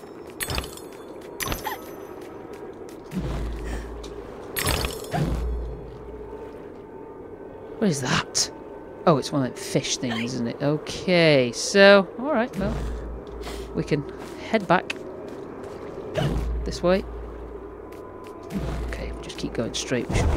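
Light footsteps tap along a hard path.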